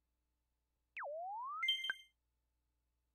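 A short electronic chime sweeps down and up, then rings brightly.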